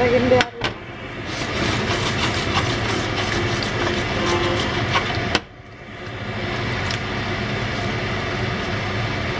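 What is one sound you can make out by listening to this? A spoon scrapes and clatters against a metal pan.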